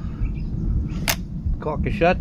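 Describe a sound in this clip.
A rifle's metal parts click.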